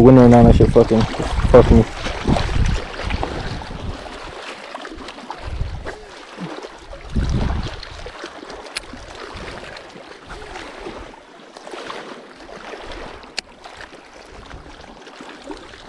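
Small waves lap gently against a rocky shore.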